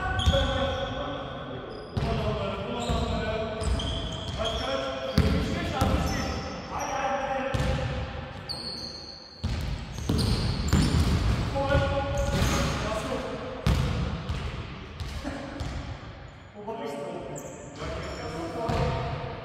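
A basketball bounces on a hardwood floor in a large echoing hall.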